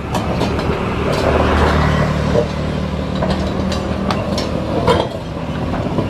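A truck engine rumbles nearby.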